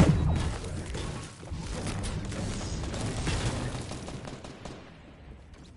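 A pickaxe strikes a brick wall with sharp thuds.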